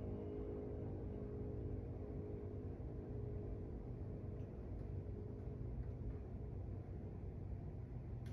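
An electric piano plays a soft, slow melody.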